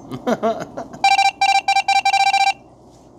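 Short electronic beeps sound rapidly as a game types out text.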